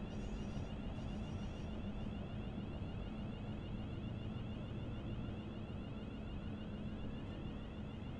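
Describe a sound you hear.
A train's electric motor hums steadily.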